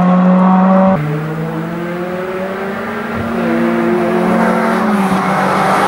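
A rally car engine revs and shifts gears as the car approaches up the road.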